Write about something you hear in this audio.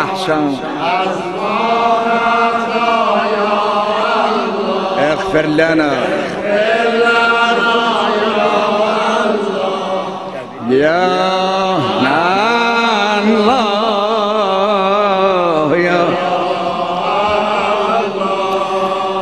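An elderly man sings a long, wavering lament close to a microphone.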